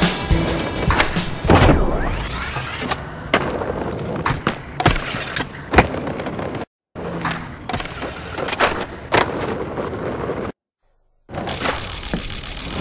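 A skateboard lands with sharp clacks.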